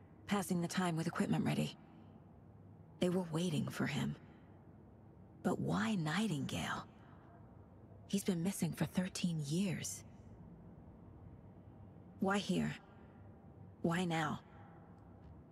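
A woman speaks quietly and calmly, close by.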